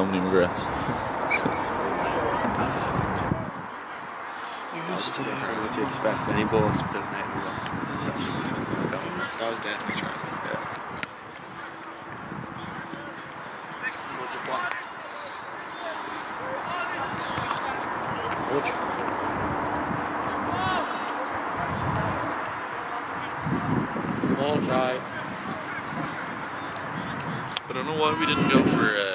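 Young men shout and call out to each other across an open field, heard from a distance.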